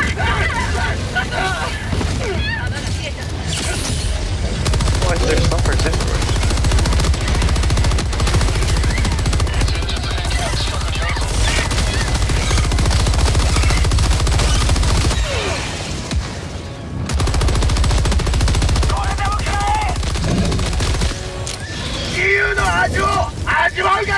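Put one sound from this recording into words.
Explosions boom and crackle nearby.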